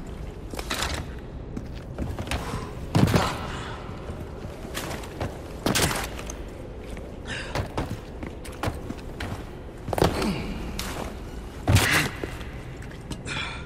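Footsteps crunch on loose rock and gravel.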